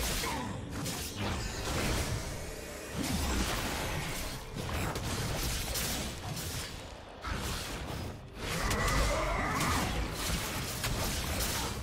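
Video game spell effects whoosh, crackle and thud during a fight.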